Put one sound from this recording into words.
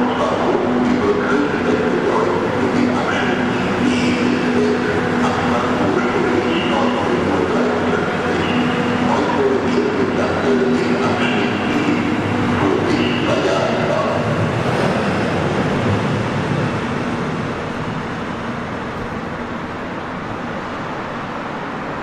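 A train rolls past with a loud rumbling hum that echoes in a large hall, then slowly fades.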